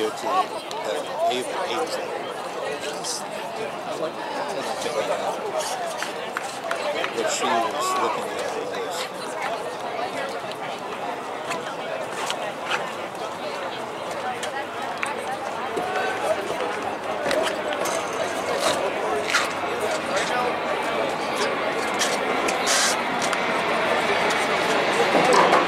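A crowd of spectators chatters and calls out across an open field outdoors.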